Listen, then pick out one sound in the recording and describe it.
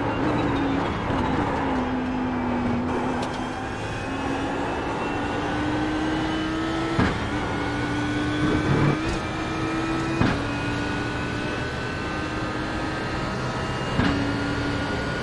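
A racing car engine roars steadily, its pitch climbing as it accelerates.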